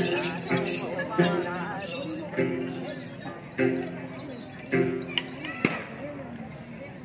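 A plucked stringed instrument plays a lively tune.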